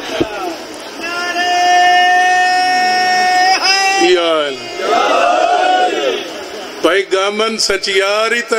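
A man chants in a long, drawn-out singing voice through a microphone and loudspeakers.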